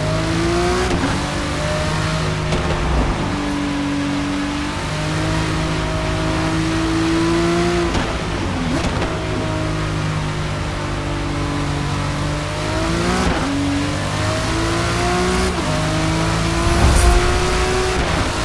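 A race car engine roars loudly, rising in pitch through each gear and dropping at each shift.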